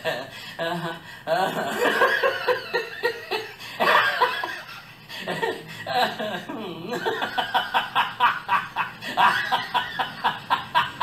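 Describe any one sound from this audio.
A young man laughs loudly and heartily, close by.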